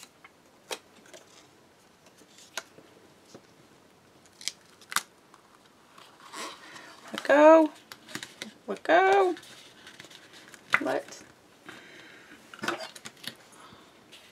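Paper rustles and crinkles as strips are handled and pressed down.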